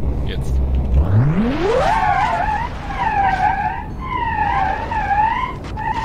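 A car engine revs up sharply and whines at high speed.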